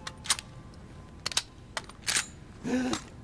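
A rifle's metal parts click and clack as it is handled and reloaded.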